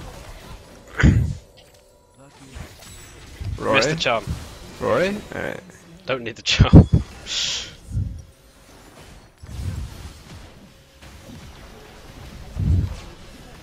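Game combat effects burst out in sudden blasts and thuds.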